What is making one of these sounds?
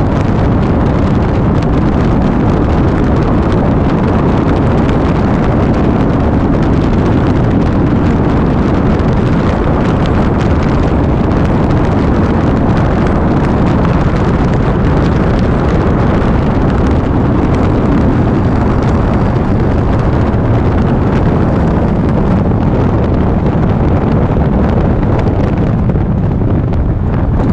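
Wind rushes loudly past a moving rider.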